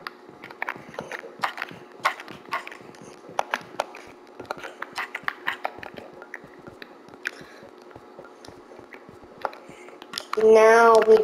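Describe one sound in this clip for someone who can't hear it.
Footsteps tap quickly on stone steps.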